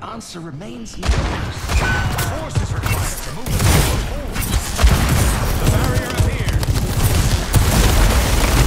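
Loud explosions boom repeatedly.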